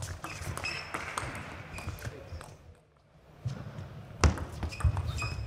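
Sneakers squeak on the floor as players shift.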